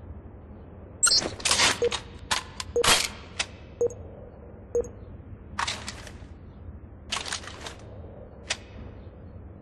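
A rifle's metal parts click and rattle as it is handled.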